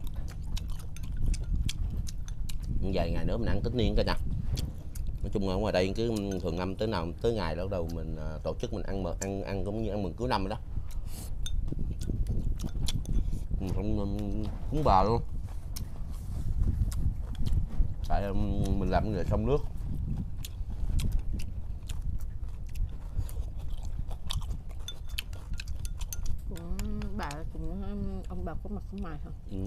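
Chopsticks clink against bowls.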